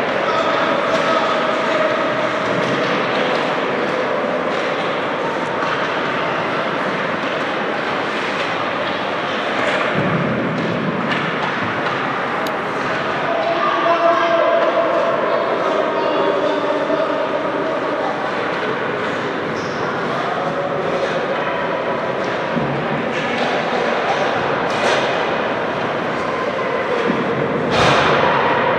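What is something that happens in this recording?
Skate blades scrape and hiss on the ice.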